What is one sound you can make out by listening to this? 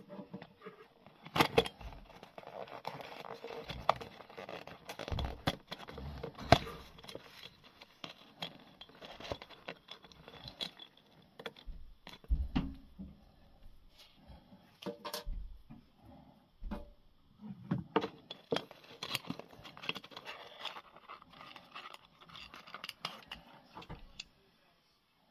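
Small objects tap and click against a hard table surface.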